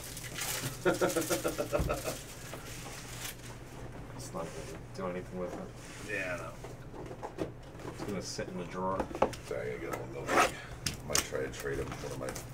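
Cardboard boxes knock and rustle as they are handled.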